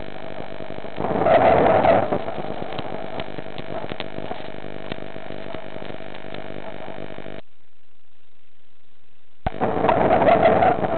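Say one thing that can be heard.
Air bubbles rush and gurgle underwater in bursts.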